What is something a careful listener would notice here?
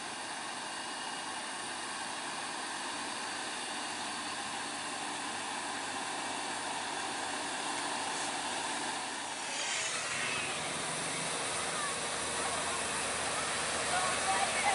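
A heavy truck engine rumbles as the truck moves slowly.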